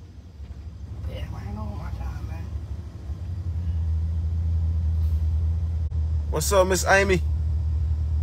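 A man speaks up close, loudly and with animation.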